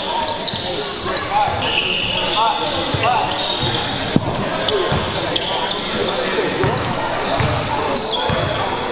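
Young people's voices and shouts echo in a large gym.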